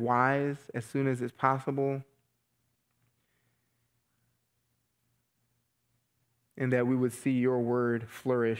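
A man speaks calmly and slowly through a microphone, pausing between phrases.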